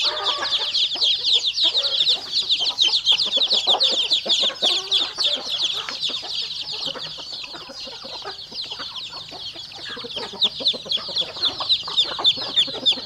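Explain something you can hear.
Hens cluck.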